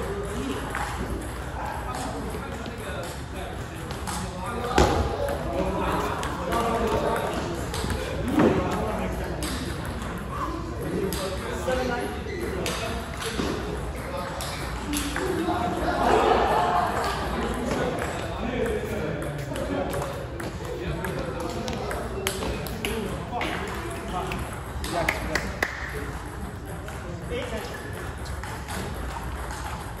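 A ping-pong ball clicks quickly back and forth off paddles and a table.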